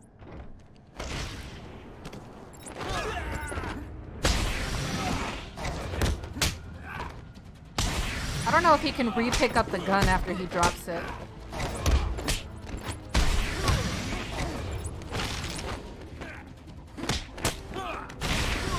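Punches and blows thud in a game fight.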